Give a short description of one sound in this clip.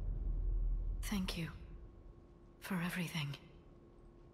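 A woman speaks softly and briefly, close by.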